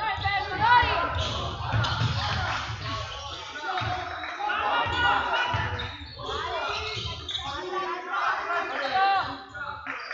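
The sounds echo in a large indoor hall.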